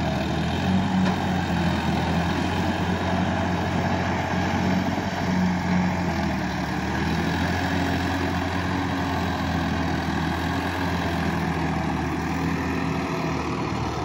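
A tractor engine runs and revs steadily nearby.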